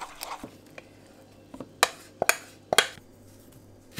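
Oats pour from a metal bowl into a plastic bowl.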